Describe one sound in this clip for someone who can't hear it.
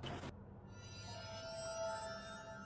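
A magical spell shimmers with bright chiming tones.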